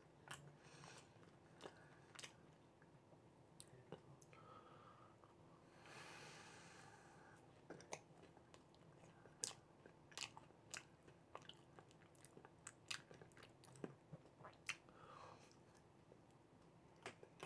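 A man eats, chewing and smacking his lips close by.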